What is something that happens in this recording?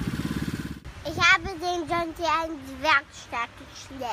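A young boy speaks close by.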